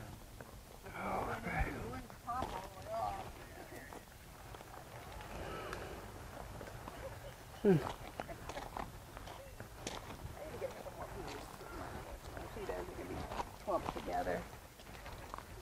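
Men and women talk casually a short distance away outdoors.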